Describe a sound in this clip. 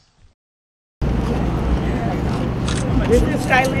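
A woman speaks through a microphone outdoors.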